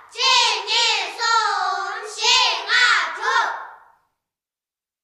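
A woman sings a high, wavering melody.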